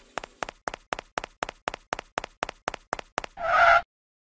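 Quick, even cartoon footsteps tap along.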